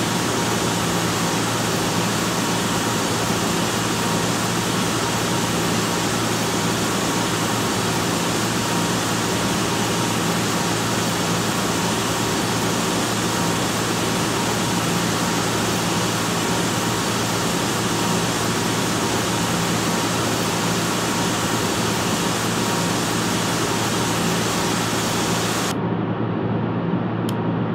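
Jet engines roar steadily, turning muffled near the end.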